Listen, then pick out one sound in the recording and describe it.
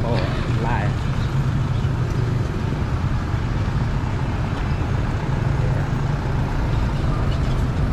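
Traffic drives past on a road.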